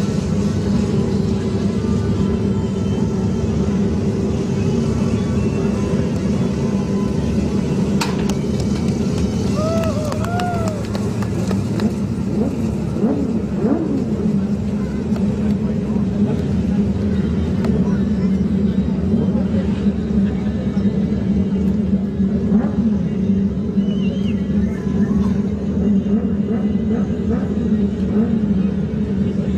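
A race car engine drones steadily at low speed.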